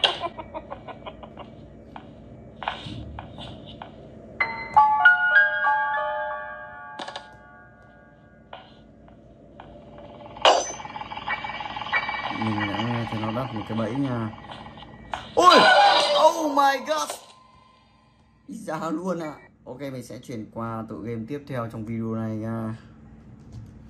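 Game sound effects and music play from a tablet.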